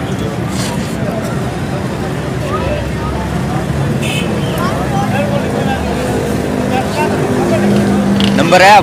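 Parrots chirp and squawk close by.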